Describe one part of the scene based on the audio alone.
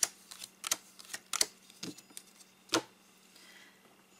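A card is laid down on a table with a soft tap.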